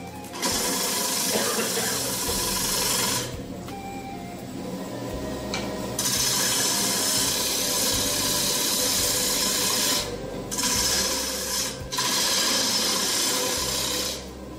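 A lathe motor hums steadily.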